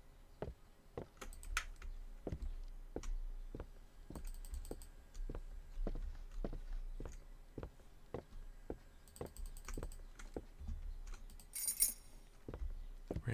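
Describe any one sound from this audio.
Slow footsteps thud on a wooden floor.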